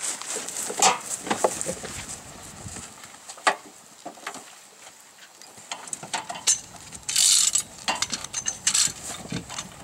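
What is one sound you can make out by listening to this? Metal creaks and crunches as a hydraulic rescue tool works on a car.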